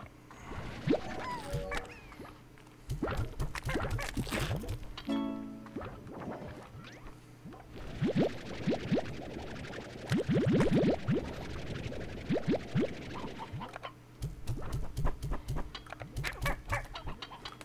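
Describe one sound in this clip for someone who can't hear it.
A video game's vacuum gun whooshes as it sucks up items.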